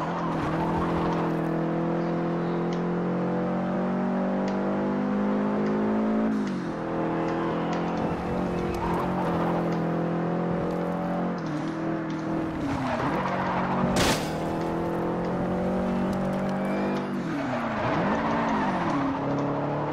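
Tyres screech as a car drifts through corners.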